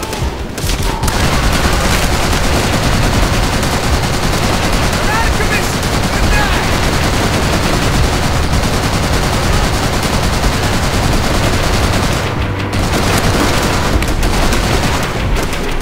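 A heavy anti-aircraft gun fires in rapid, booming bursts.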